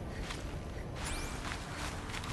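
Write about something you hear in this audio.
Grass and leaves rustle as someone moves through them.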